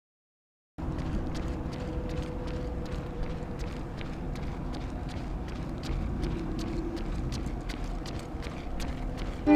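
Footsteps thud steadily on the ground outdoors.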